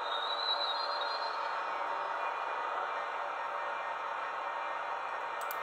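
A small electric motor whirs steadily.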